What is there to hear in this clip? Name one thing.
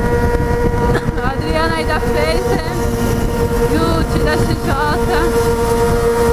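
Other motorcycles rev nearby as they ride alongside.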